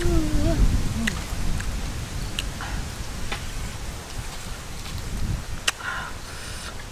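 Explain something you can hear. A young woman chews crunchy food close by.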